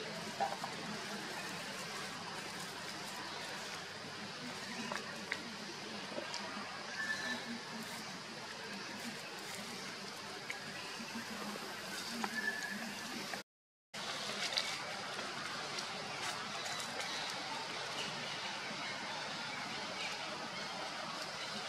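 Small monkeys scramble and rustle on branches.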